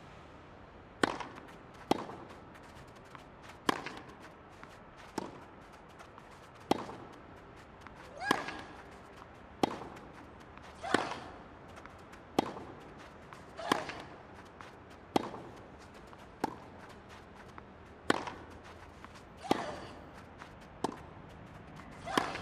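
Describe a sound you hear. A tennis ball is struck back and forth with rackets in a steady rally.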